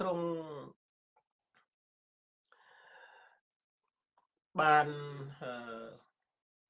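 A man speaks slowly and calmly into a close microphone, with long pauses.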